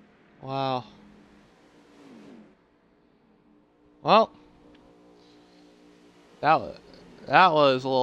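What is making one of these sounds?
Race car engines roar past at high speed, one after another, their pitch dropping as they go by.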